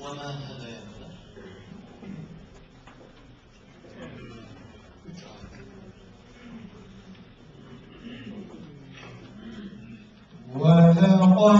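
A man speaks quietly through a microphone.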